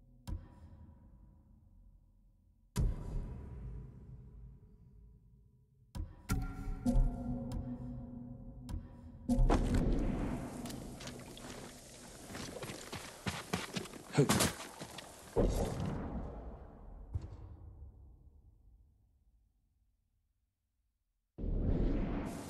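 Game menu clicks and chimes sound as options change.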